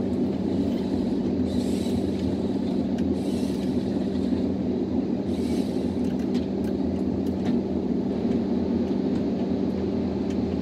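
A forestry harvester's diesel engine drones, heard from inside the cab.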